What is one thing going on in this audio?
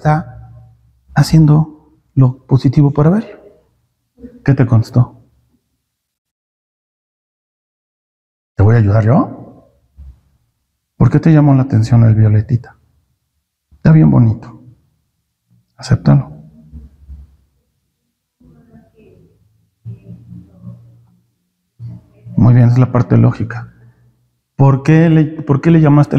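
A middle-aged man speaks with animation in bursts, with pauses, close to the microphone.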